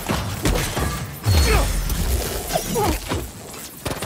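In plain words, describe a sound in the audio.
Debris clatters and scatters across the ground.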